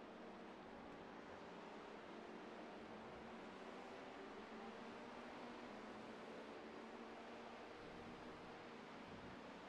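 Race car engines roar steadily at high speed.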